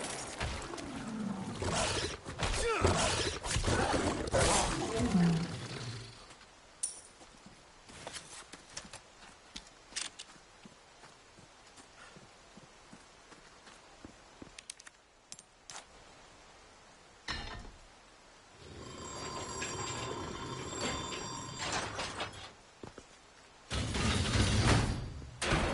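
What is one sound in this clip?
A young man talks with animation through a close microphone.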